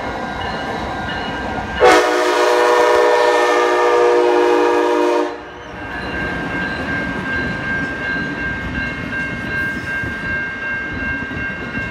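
A passenger train rumbles and clatters past on the tracks.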